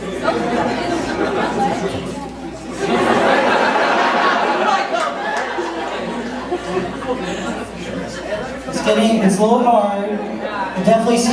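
Teenagers talk to each other in a hall.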